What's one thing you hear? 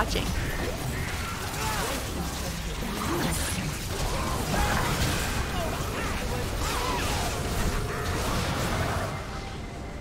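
Video game spells crackle and clash in a busy fight.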